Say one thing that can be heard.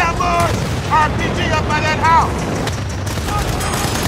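A shell explodes with a heavy blast.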